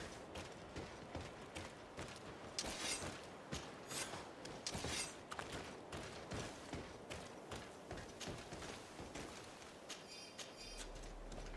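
Footsteps thud on stone paving.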